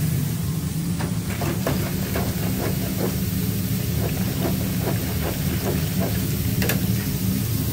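Hot oil bubbles and crackles in a deep fryer.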